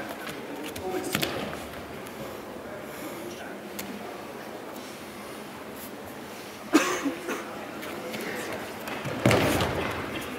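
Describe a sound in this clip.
A body falls onto a padded mat with a dull thud in a large echoing hall.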